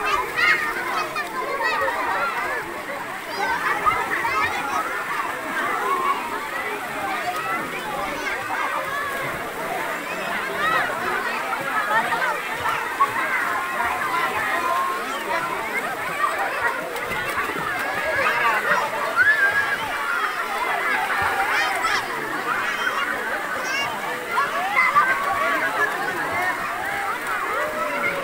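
Children shout and squeal with excitement nearby.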